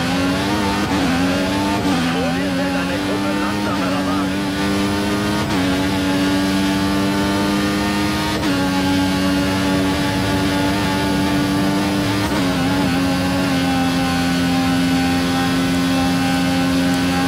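A racing car engine roars at high revs, its pitch climbing and dropping with each gear change.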